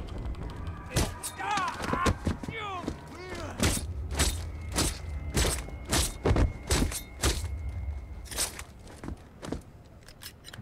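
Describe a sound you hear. Blows and thuds land hard in a close scuffle.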